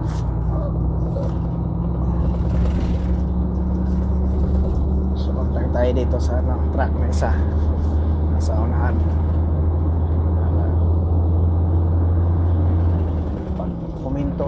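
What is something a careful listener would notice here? Tyres roll along the road.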